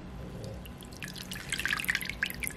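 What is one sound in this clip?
Water splashes and sloshes in a bowl as a hand stirs it.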